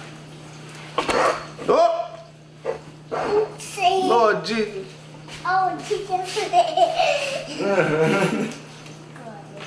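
A young child talks and laughs close by.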